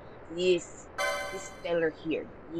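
A short electronic menu chime sounds.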